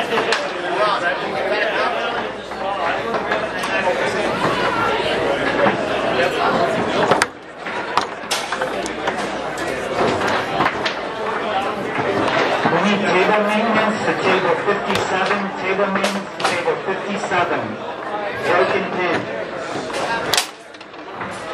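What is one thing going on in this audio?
Table football rods rattle and clack sharply as a ball is struck.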